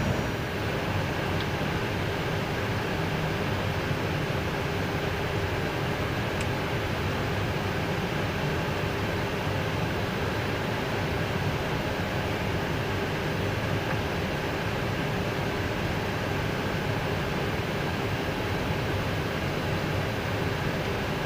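Jet engines hum steadily inside an aircraft cockpit as the plane taxis.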